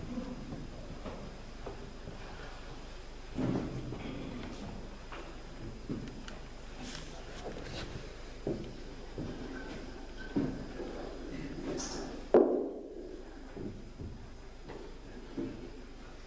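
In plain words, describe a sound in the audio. A congregation murmurs quietly in a large echoing hall.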